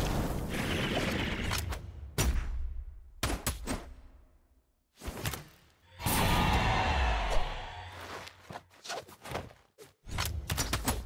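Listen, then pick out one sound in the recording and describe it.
Cartoon fighters' blows land with sharp, punchy hits.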